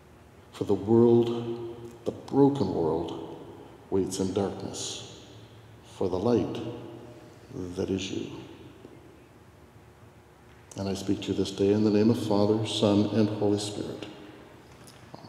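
An elderly man speaks slowly and solemnly, echoing through a large hall.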